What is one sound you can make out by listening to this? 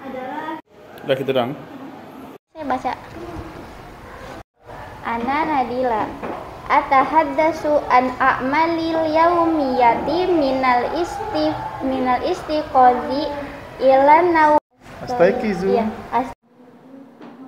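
A young woman reads aloud in a clear, melodic voice.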